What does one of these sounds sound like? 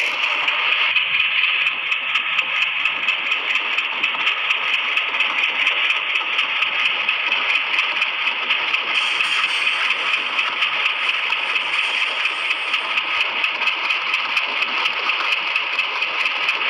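Train wheels click rhythmically over the track joints.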